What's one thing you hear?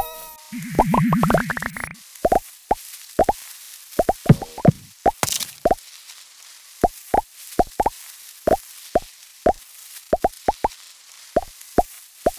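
Short bright game chimes pop in quick succession as a snake gobbles up pellets.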